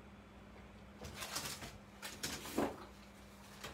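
Thick paper rustles and flexes as it is handled.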